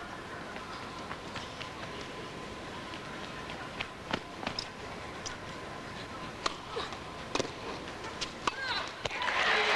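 A tennis ball is struck back and forth with sharp pops in a large echoing hall.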